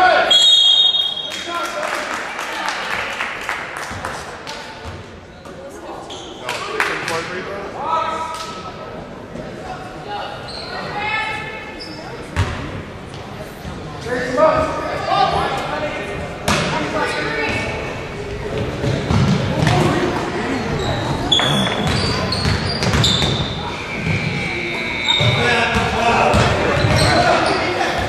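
Sneakers squeak sharply on a wooden floor in an echoing gym.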